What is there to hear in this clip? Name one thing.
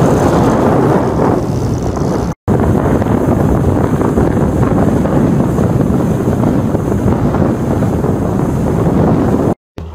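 A boat engine roars steadily.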